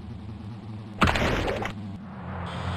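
A figure lands hard on pavement with a loud thud.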